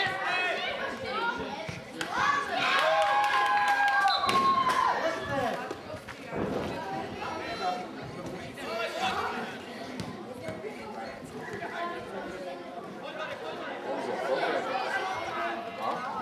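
A small crowd of spectators cheers and shouts outdoors.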